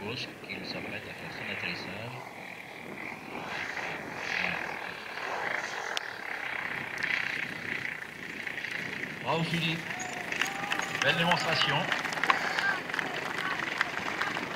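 A small model plane engine buzzes, rising and falling in pitch as it swoops past.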